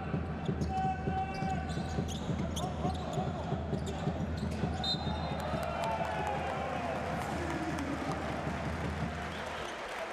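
A crowd murmurs and cheers throughout a large echoing arena.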